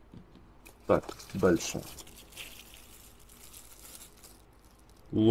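A plastic wrapper crinkles as it is handled.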